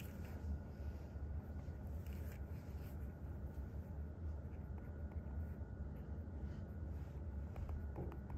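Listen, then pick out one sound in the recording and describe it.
A pen scratches and taps on paper.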